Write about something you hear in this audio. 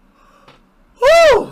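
A young man lets out a loud, wailing yell.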